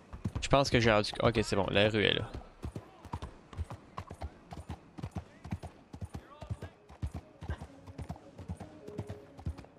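A horse's hooves clop steadily on cobblestones.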